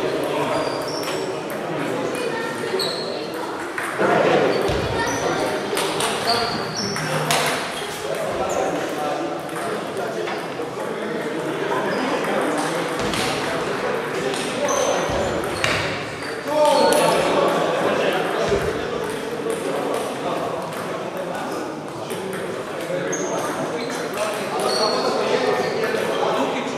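Table tennis balls click sharply off paddles and tables in a large echoing hall.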